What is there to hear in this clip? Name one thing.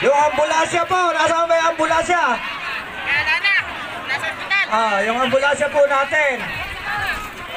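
A man shouts excitedly close by.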